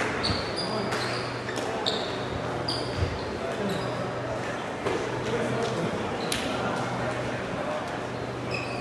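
Badminton rackets strike shuttlecocks with light pops.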